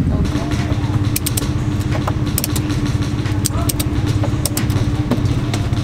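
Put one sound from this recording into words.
A metal latch clicks.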